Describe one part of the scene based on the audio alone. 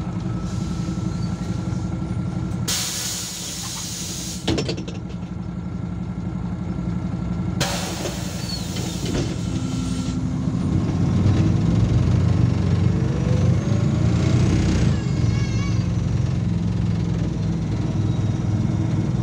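A bus engine rumbles steadily and grows louder as the bus pulls away.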